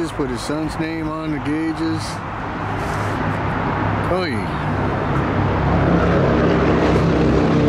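A motorcycle engine idles with a low steady rumble.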